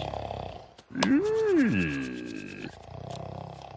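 A man snickers mischievously.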